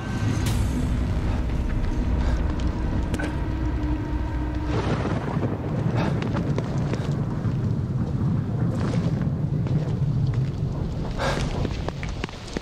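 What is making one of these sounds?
Footsteps walk softly on pavement.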